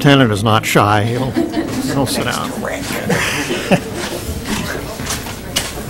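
A woman laughs softly near a microphone.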